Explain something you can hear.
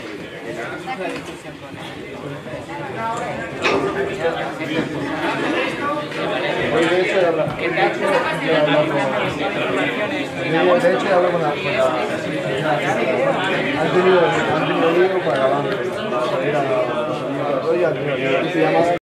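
A crowd of men and women chatter all at once.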